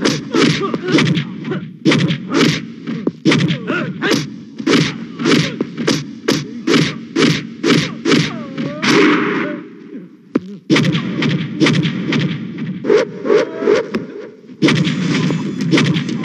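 Punches and kicks land with loud, sharp thuds in quick succession.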